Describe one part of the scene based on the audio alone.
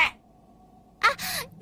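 A young woman speaks softly, as a cartoon voice.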